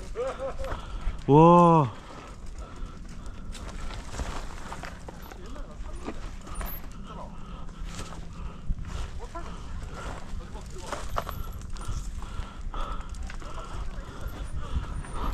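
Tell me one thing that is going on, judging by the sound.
Bike tyres crunch and skid over a dry, rocky dirt trail.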